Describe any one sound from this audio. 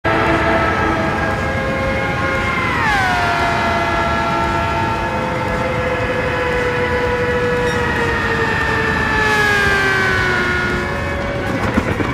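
A racing car engine whines loudly at high speed, its pitch dropping sharply and later sinking slowly.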